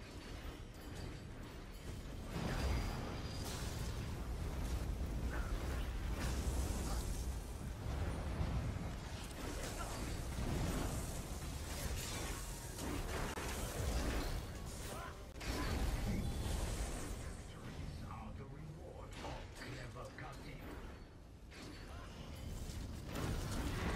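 Magic spells blast and crackle in a game battle.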